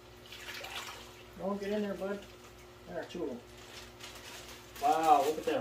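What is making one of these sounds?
Water sloshes in a plastic bag.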